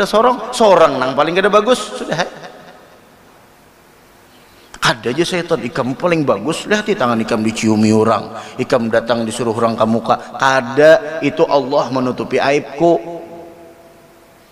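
A man speaks calmly into a microphone, with a chanting, drawn-out voice.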